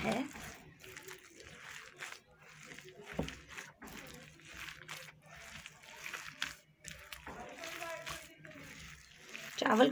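A hand squishes and kneads a wet food mixture in a bowl.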